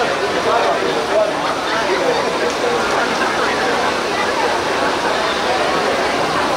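A large crowd chatters and calls out all around, outdoors.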